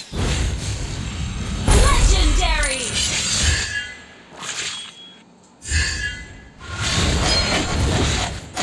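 Game battle effects clash and blast in bursts.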